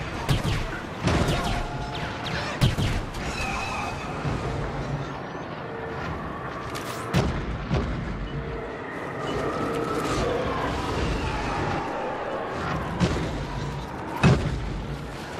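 Laser guns fire in sharp, loud bursts.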